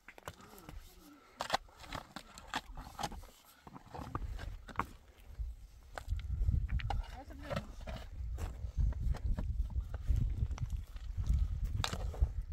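A shovel scrapes and digs into stony soil.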